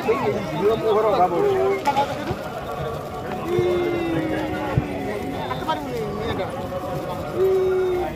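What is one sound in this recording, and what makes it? A sparkler fizzes and crackles close by.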